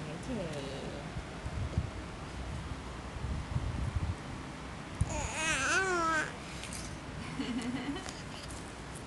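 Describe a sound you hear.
A baby squeals and babbles up close.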